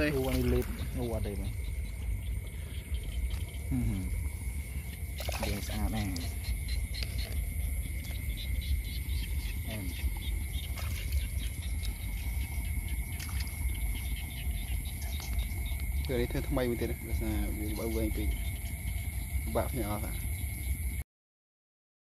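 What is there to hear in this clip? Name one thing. Hands squelch in wet mud.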